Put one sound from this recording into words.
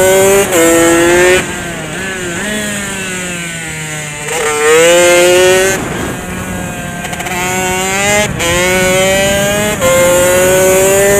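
A motorcycle engine revs hard, rising and dropping through gear changes.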